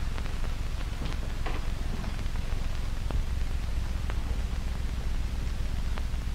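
Fabric rustles softly as a woman handles clothes.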